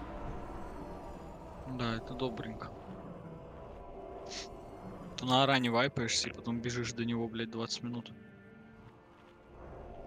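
Magic spells whoosh and crackle in a game.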